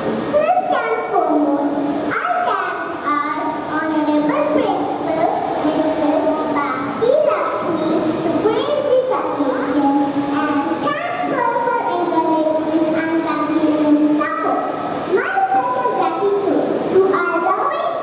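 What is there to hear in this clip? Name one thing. A young girl sings into a microphone, heard through loudspeakers.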